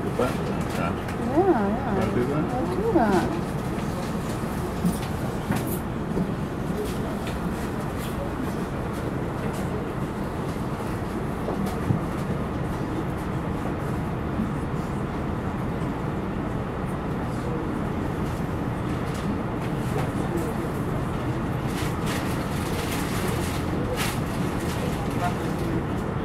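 Street traffic hums steadily nearby outdoors.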